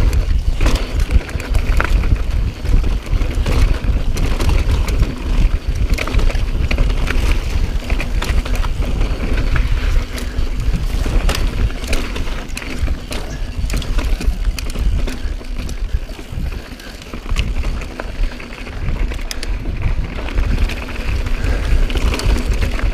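A bicycle's frame and chain clatter over bumps.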